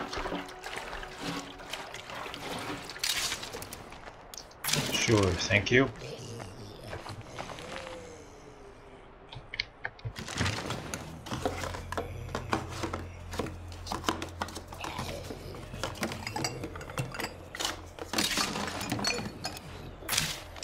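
Hands rummage and clatter through a container.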